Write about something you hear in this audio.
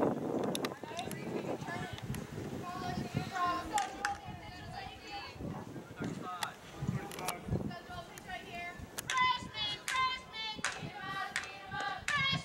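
A group of people chants and cheers outdoors.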